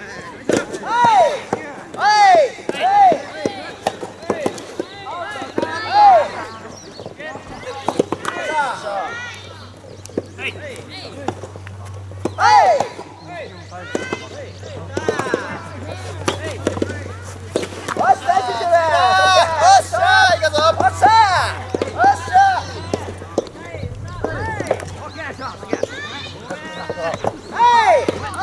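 Young men shout during a soft tennis rally outdoors.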